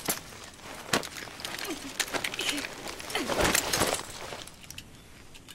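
Bodies scuffle and thud in a close struggle.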